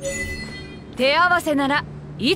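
A bright chime rings out in a quick rising flourish.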